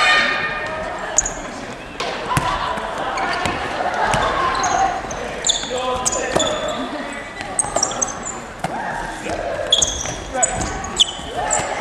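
Sneakers squeak sharply on a wooden court floor.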